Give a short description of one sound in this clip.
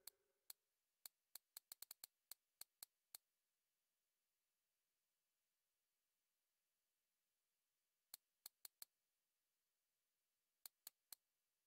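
Short, sharp menu clicks tick in quick bursts.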